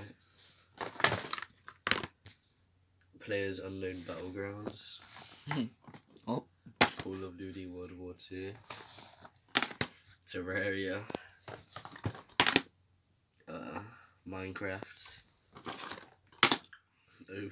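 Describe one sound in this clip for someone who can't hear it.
Plastic game cases clack against each other as they are shuffled.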